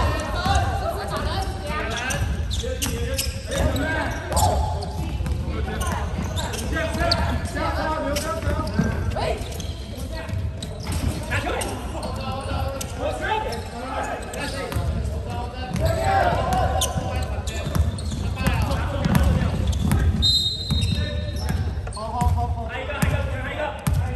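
A crowd of young men and boys chatters and calls out throughout.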